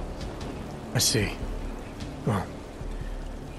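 A man speaks calmly and briefly.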